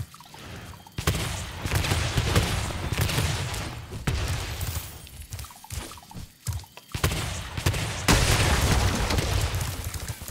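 A fireball explodes with a crackling blast.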